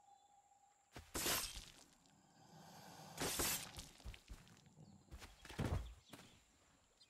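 Heavy blows and thrashing sounds come in bursts during a struggle with an alligator.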